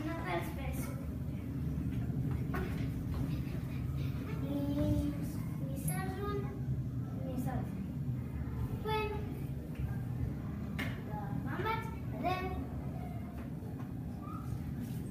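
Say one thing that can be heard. Young children talk and call out in an echoing room.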